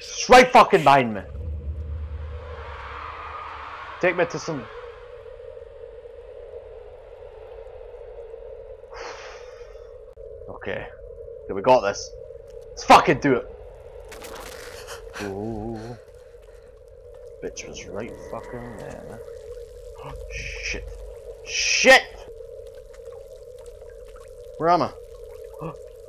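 A young man speaks close to a microphone, in short bursts.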